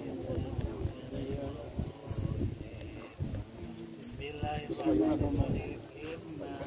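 Several men talk and recite in low voices nearby.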